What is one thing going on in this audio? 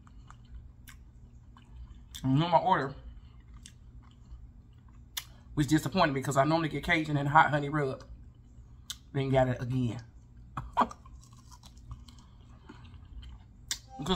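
A woman chews food noisily.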